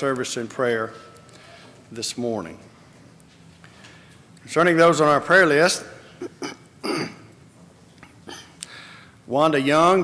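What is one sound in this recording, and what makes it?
A middle-aged man speaks calmly through a microphone, with pauses between phrases.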